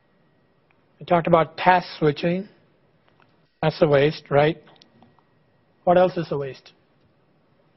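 A middle-aged man lectures calmly through a microphone, pausing between phrases.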